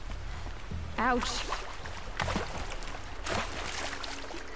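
Water splashes as someone wades through a shallow stream.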